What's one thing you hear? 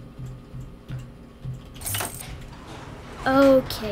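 A metal door creaks open.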